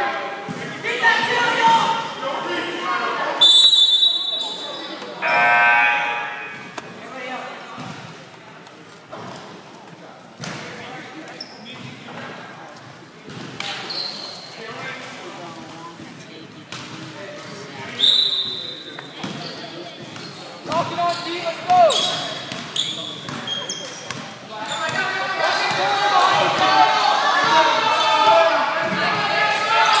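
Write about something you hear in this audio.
A basketball bounces on a wooden floor.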